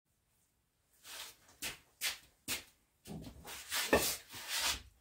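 Footsteps thud on a hard floor as a man walks up close.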